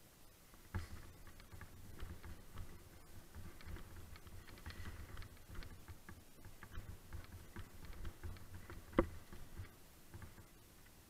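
Bicycle tyres roll and crunch over a dirt trail with dry leaves.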